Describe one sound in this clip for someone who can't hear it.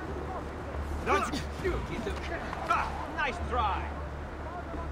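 A blade slashes and strikes a man.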